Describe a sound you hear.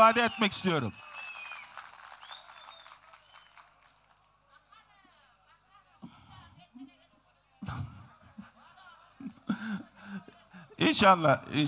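A large crowd outdoors murmurs and calls out.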